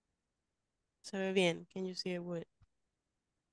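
A young woman speaks calmly through a headset microphone on an online call.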